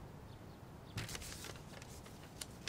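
Paper rustles as a folded document is opened.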